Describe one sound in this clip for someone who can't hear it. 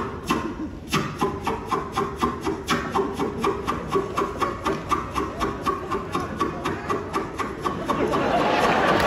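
An audience claps along in a steady rhythm.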